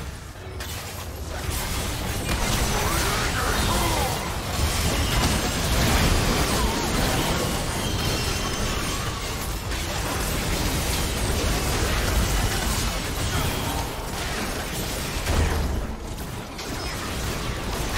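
Magic blasts whoosh and burst in a busy fight.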